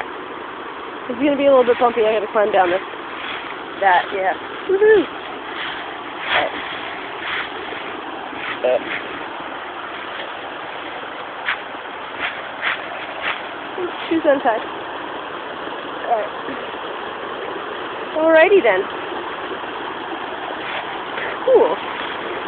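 A shallow stream ripples steadily over rocks, heard outdoors.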